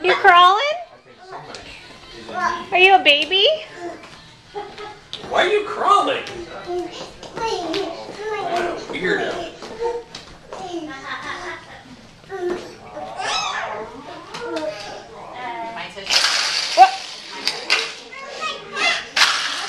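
A woman talks to a baby nearby in a lively, high voice.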